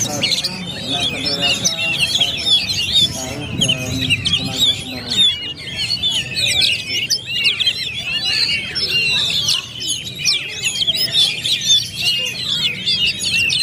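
Caged songbirds sing loud, rapid, warbling phrases without pause.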